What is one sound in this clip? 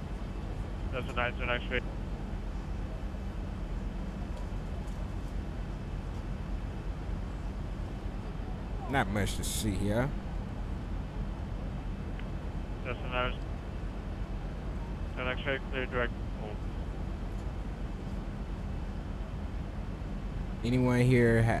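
A young man speaks in short bursts through a close microphone.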